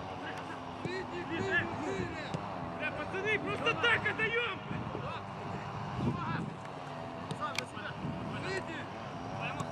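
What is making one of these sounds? Men shout to each other outdoors across an open field.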